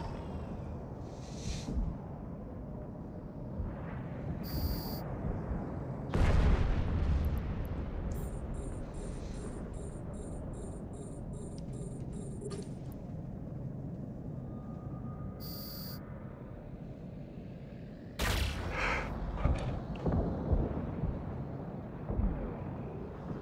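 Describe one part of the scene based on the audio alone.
A low spaceship engine rumble hums steadily.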